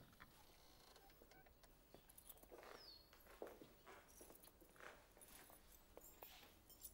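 Footsteps tap on a hard floor in an echoing room.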